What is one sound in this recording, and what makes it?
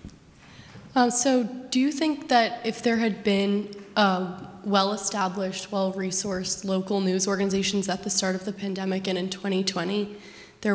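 A young woman speaks calmly into a microphone, heard through loudspeakers in a large room.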